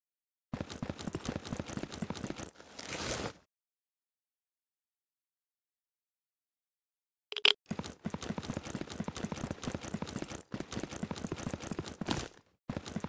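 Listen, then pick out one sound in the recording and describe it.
Quick footsteps patter along a hard floor.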